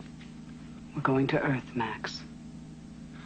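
A young woman speaks quietly and tensely, up close.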